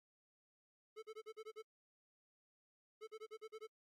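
Short electronic blips chirp in quick bursts.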